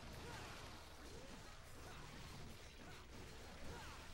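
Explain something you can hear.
Sword slashes whoosh and clang in a fight.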